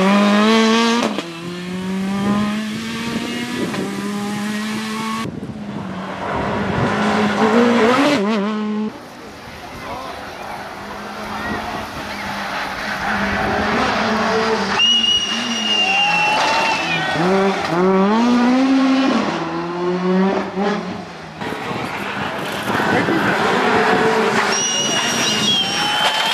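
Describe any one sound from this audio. A rally car engine revs hard and roars past, shifting gears.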